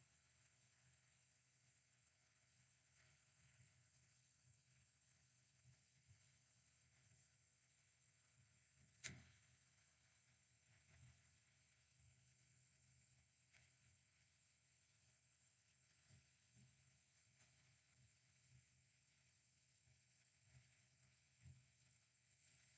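A small tool scrapes and taps softly against a circuit board.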